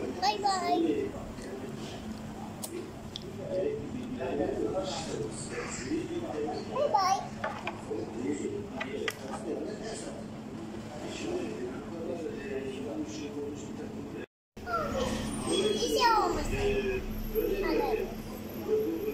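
A young girl talks and babbles playfully close by.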